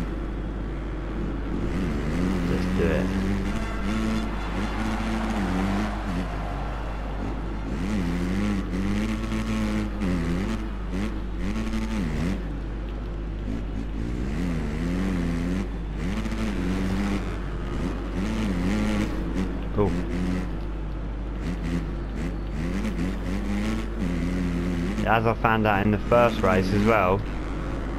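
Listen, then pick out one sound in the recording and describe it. A dirt bike engine revs and whines, rising and falling as the rider shifts gears.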